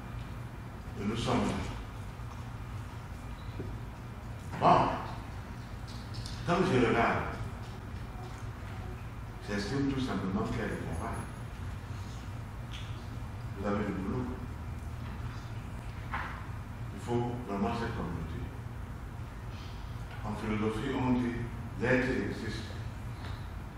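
A man speaks with animation in short bursts, pausing between phrases.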